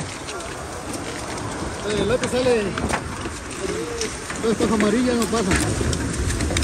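Crisp celery stalks snap as they are cut.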